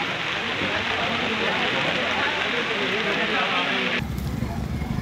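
A crowd of men murmurs and chatters nearby.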